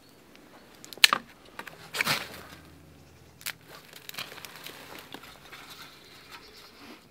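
Twigs clatter into a small metal stove.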